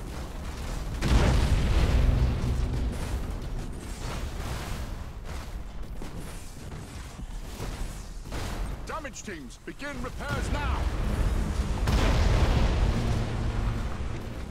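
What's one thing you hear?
Explosions boom in a space battle.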